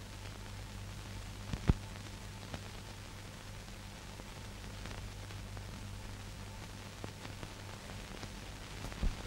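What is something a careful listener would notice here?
Paper pages rustle softly as they are turned.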